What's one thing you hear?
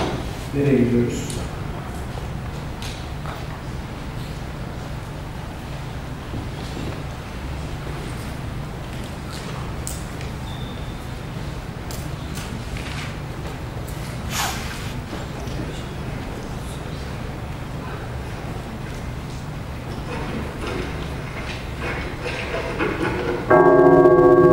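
A man speaks into a microphone in a large hall.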